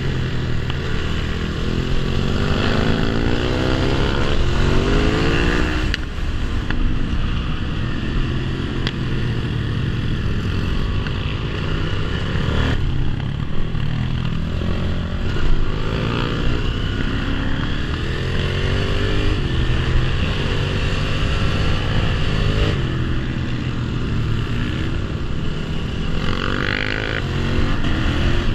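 A motorcycle engine revs up and down close by.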